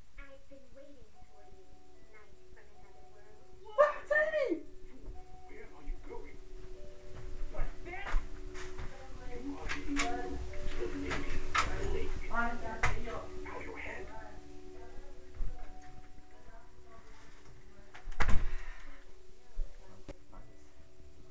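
Soft music plays from a television.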